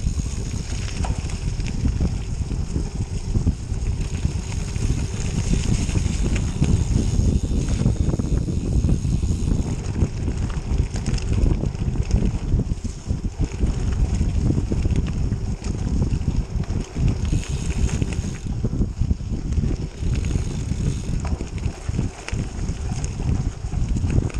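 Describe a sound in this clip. Strong wind rumbles loudly past the microphone.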